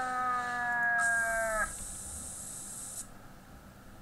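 A spray bottle hisses in a short burst.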